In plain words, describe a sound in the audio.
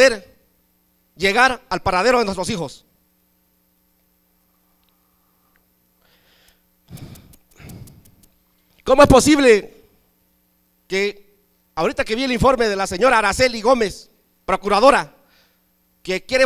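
A middle-aged man speaks forcefully into a microphone, heard through loudspeakers, in bursts with pauses.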